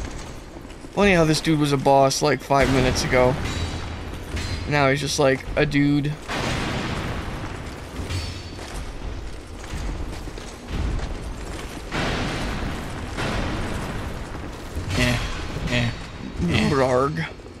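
A man talks with animation over a headset microphone.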